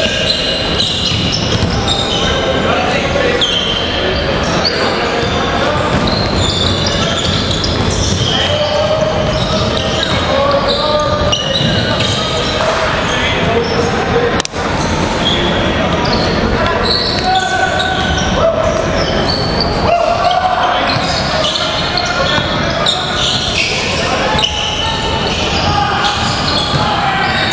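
Men shout and call out to each other in a large echoing gym.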